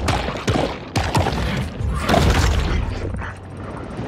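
A creature bites with sharp, crunching thuds.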